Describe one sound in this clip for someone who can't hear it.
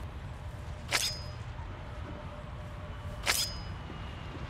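A body thuds heavily to the ground.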